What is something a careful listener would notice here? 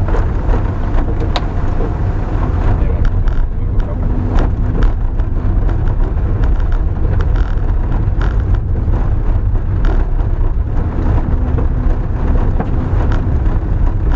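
A car body knocks and creaks over bumps.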